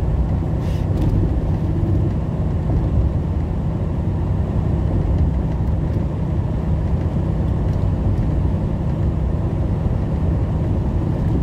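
A truck engine drones steadily while driving on a highway.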